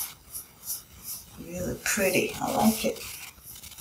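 A comb rustles through hair.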